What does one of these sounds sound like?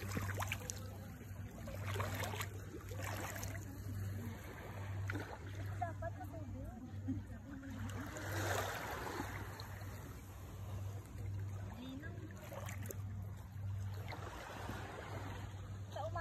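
Feet slosh and splash through shallow water.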